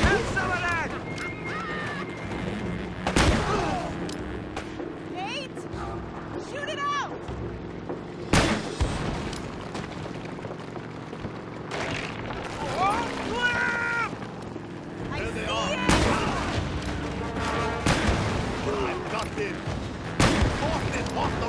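Gunshots crack repeatedly.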